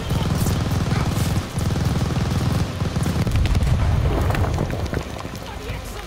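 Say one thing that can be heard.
Rifle shots and rumbling gunfire crack rapidly close by.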